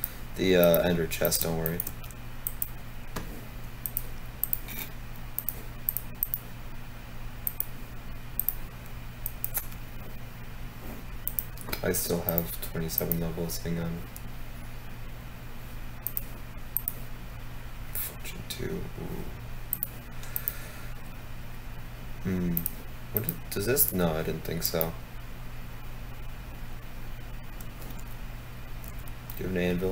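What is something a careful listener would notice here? Short game menu clicks tick now and then.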